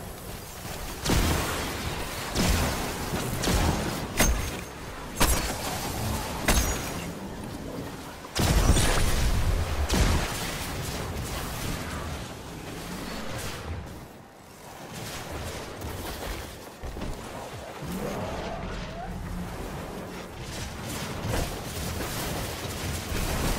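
Gunshots and explosions boom loudly in a video game.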